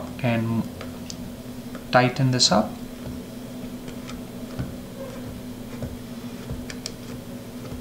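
Small plastic parts click and tap softly as hands fit them together.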